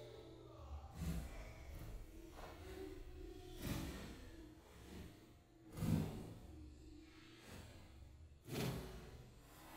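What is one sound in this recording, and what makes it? A young child lands with soft thuds on padded mats.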